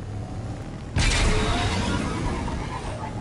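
A hover bike's engine suddenly roars with a rushing boost.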